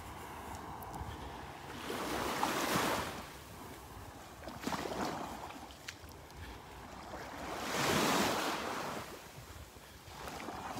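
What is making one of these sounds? Small waves lap and wash gently onto a sandy shore.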